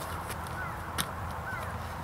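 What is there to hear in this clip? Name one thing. A football smacks into a player's hands as it is caught.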